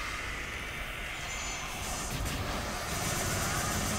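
Game sound effects whoosh and crackle as a character attacks.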